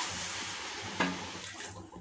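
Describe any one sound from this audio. A spatula knocks against a metal pot.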